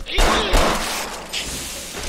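A gunshot rings out sharply.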